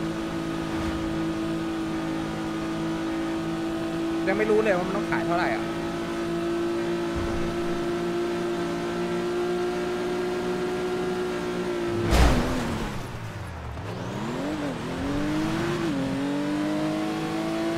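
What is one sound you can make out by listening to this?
A car engine hums steadily at high speed, then drops and revs up again.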